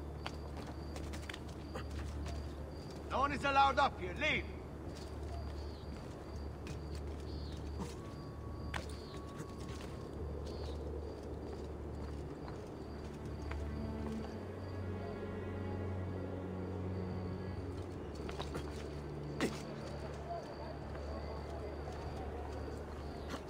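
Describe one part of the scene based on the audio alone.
Footsteps patter quickly across roof tiles.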